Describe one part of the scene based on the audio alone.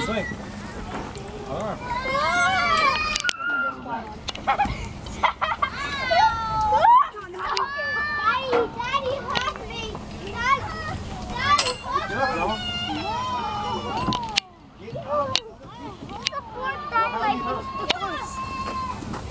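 Young children shout and chatter excitedly nearby outdoors.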